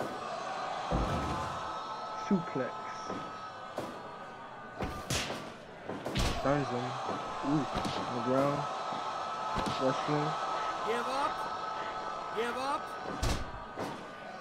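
Heavy thuds of bodies slam onto a wrestling mat.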